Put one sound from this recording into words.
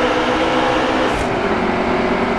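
A truck engine shifts gear with a brief drop in pitch.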